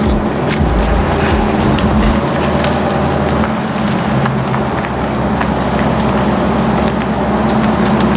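A sports car engine revs and the car drives off.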